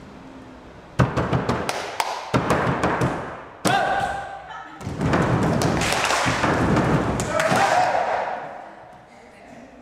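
A young man claps his hands sharply.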